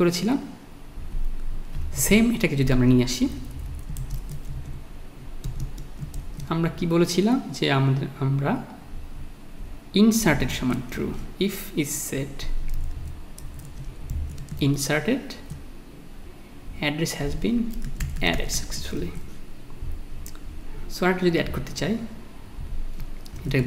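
A man talks calmly and explains into a close microphone.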